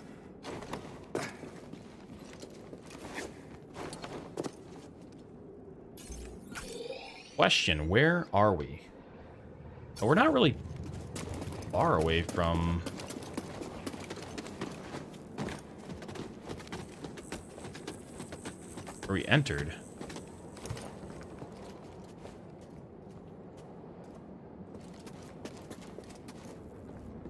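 Footsteps tread on rock.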